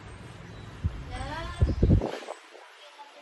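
A young woman speaks, slightly distant.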